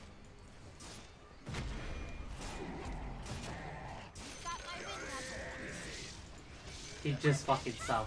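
Magic spells burst and whoosh during a fight between game characters.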